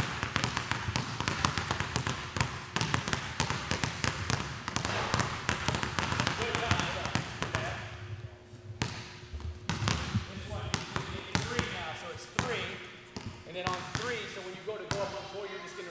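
A basketball bounces rapidly on a hardwood floor in an echoing gym.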